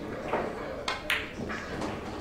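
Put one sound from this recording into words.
A cue strikes a pool ball with a sharp click.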